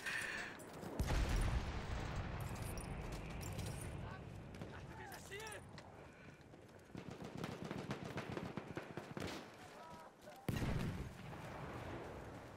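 Explosions boom and rumble nearby.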